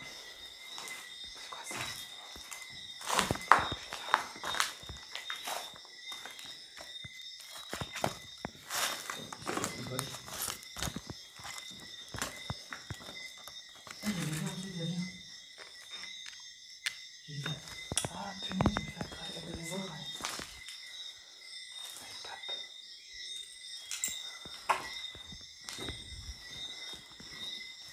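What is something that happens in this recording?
Footsteps crunch over scattered debris and paper.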